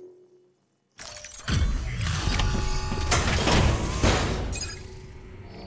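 A heavy mechanical suit whirs and clanks loudly.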